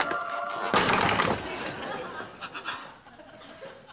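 A woman knocks on a wooden door.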